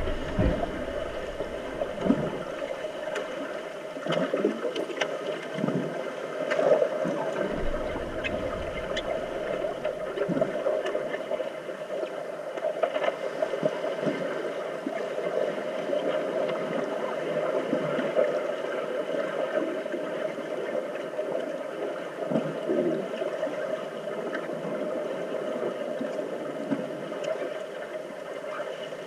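Muffled underwater sounds of swimmers thrashing and kicking fill the water.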